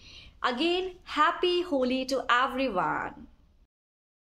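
A young woman speaks cheerfully and with animation close to a microphone.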